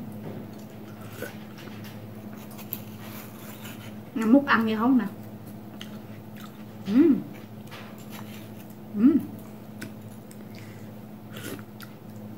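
A young woman chews and slurps juicy fruit.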